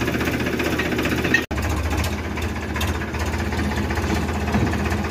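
A tractor engine chugs loudly nearby with a steady, throbbing rumble.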